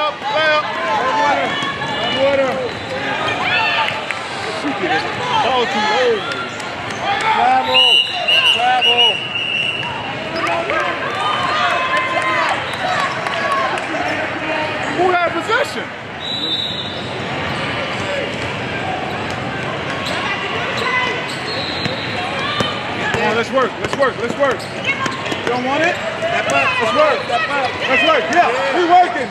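A crowd of spectators chatters and cheers in a large echoing hall.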